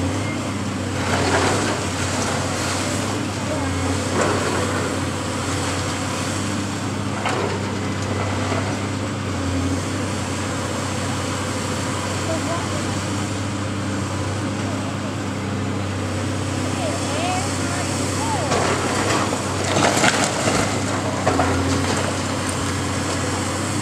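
A heavy diesel excavator engine rumbles steadily and revs.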